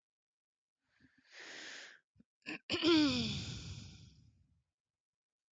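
A woman laughs loudly into a headset microphone.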